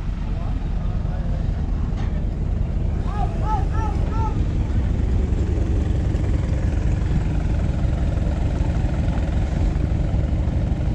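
A crowd of spectators talks and calls out outdoors.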